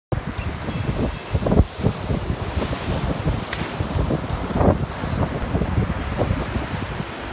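Waves break and wash onto a beach.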